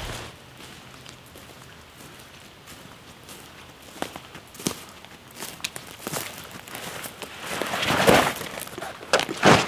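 Footsteps crunch on dry leaves, coming closer.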